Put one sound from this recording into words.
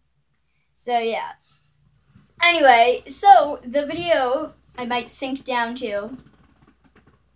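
A young boy speaks cheerfully and close to the microphone.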